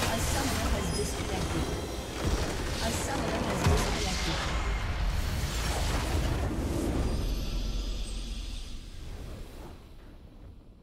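A huge magical explosion booms and crackles, then rumbles away.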